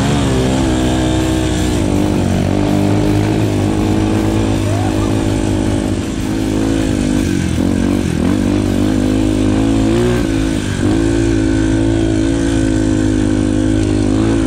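Tyres crunch over a bumpy dirt track.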